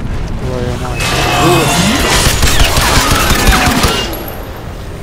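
Gunshots crack in rapid bursts, close by.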